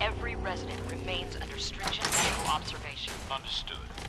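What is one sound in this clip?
A metal security gate creaks open.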